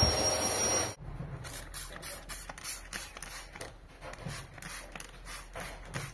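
A spray bottle squirts in quick repeated bursts.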